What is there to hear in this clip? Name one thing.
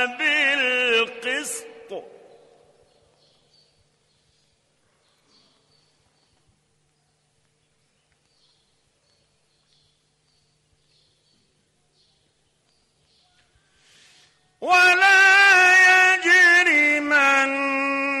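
An elderly man chants in a long, drawn-out voice, with a long pause between phrases.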